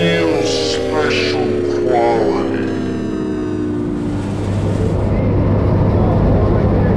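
A single-engine propeller plane's engine drones at full power during takeoff.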